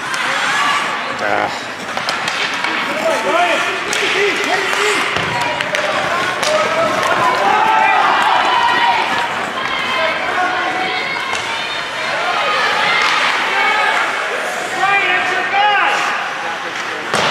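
A crowd of spectators cheers and shouts in a large echoing rink.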